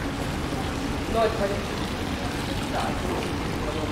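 Water splashes and gurgles from a small fountain.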